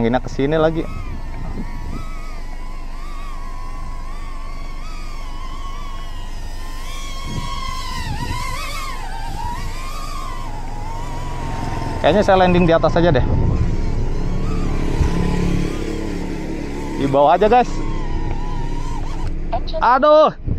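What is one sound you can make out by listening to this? A small drone's motors whine and buzz, rising and falling in pitch as it flies.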